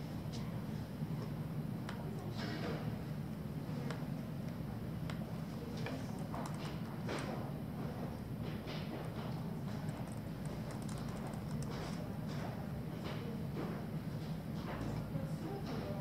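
Keys on a laptop keyboard click in quick taps.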